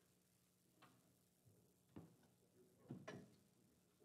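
A heavy case is set down with a thump.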